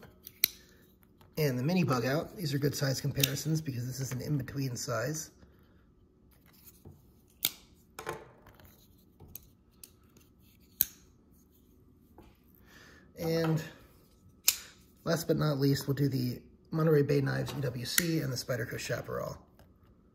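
Folding knives knock down onto a wooden table.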